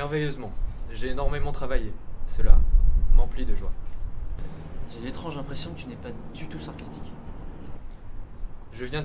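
Another young man answers with animation nearby.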